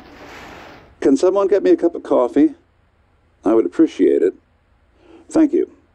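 A man speaks calmly, heard through a loudspeaker.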